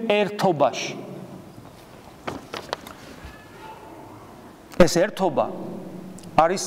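A man speaks slowly and deliberately, with pauses, in a room with a slight echo.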